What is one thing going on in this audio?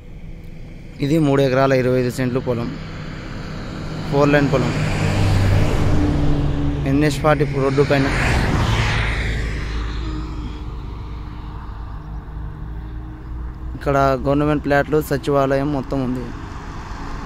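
A vehicle horn honks in short bursts.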